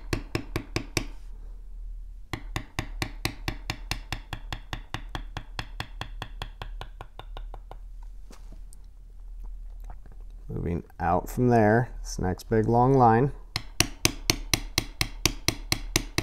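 A metal tool taps rapidly and evenly on leather.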